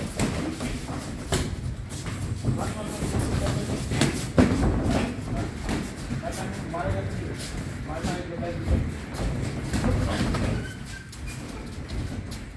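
Feet shuffle and scuff on a ring floor.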